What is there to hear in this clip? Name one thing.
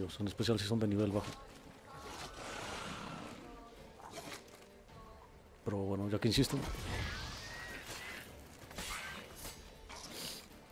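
A sword swings and strikes in quick blows.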